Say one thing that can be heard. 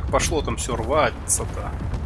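A laser weapon fires a sharp blast.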